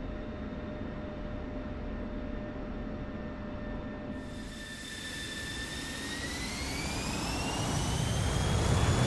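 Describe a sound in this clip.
A jet engine whines and spools up with a rising pitch.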